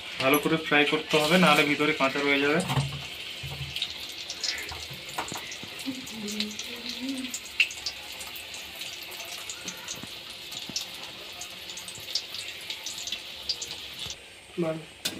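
Hot oil sizzles and crackles as food fries.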